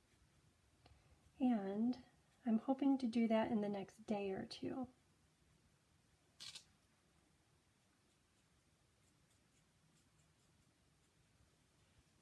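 A marker tip scratches softly across paper.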